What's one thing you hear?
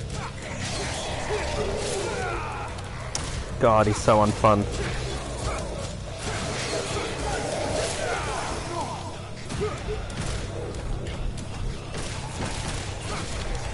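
Fiery explosions burst with loud whooshes.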